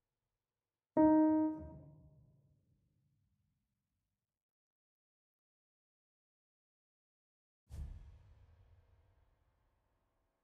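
A synthesized piano note sounds and slowly rings out.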